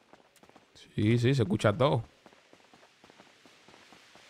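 Quick footsteps patter on pavement.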